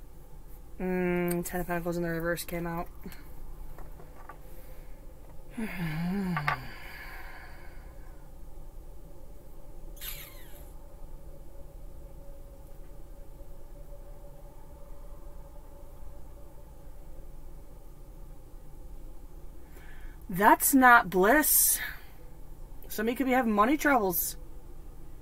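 A woman speaks calmly and close by, in short bursts with long pauses.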